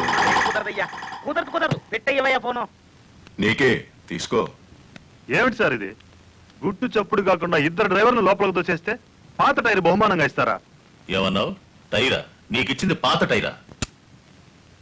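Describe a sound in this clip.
A man speaks loudly with animation nearby.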